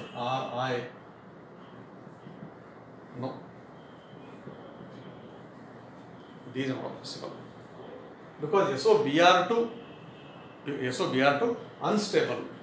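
A middle-aged man explains calmly into a close microphone, with pauses.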